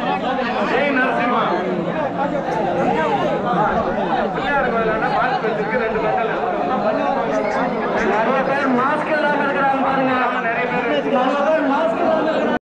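A large crowd of men shouts and chatters loudly outdoors.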